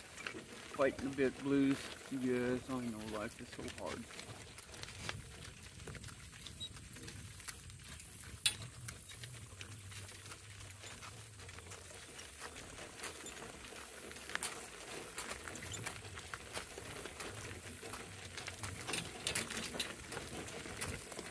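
Hooves clop on a gravel road.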